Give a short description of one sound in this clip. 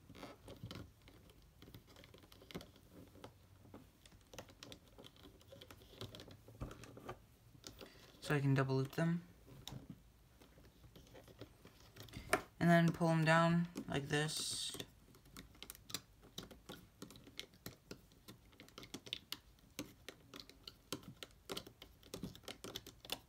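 Rubber bands snap and click softly against plastic pegs.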